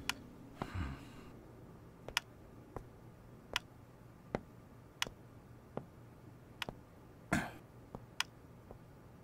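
Slow footsteps tap on a hard floor.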